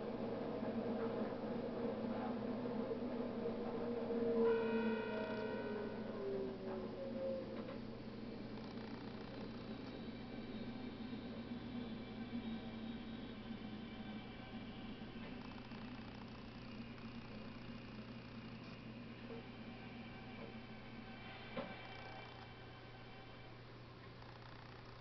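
An electric train's wheels rumble in a tunnel as it brakes to a stop.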